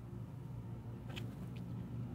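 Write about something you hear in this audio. A man sips a drink.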